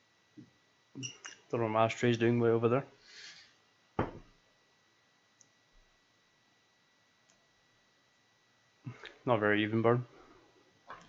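A young man speaks casually, close to a microphone.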